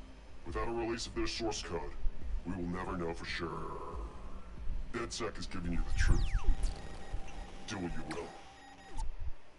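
A man speaks with a distorted, electronic voice.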